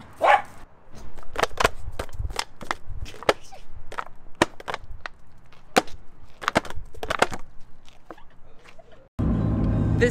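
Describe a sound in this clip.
A plastic bottle crinkles and crackles as a small dog bites and snaps at it.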